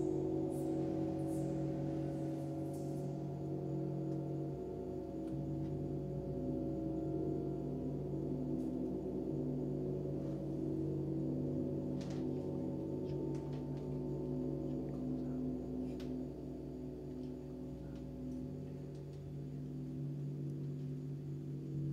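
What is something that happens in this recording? Large gongs hum and ring with a deep, steady, shimmering drone.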